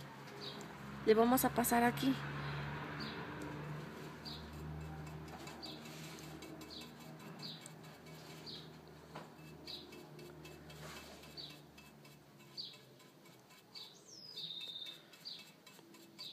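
A paintbrush softly brushes over a hard surface.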